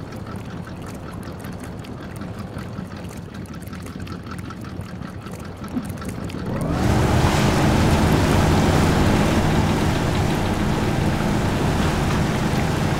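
Water and mud splash under tyres.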